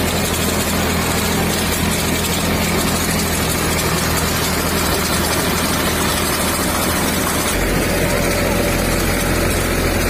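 A sprayer engine hums steadily.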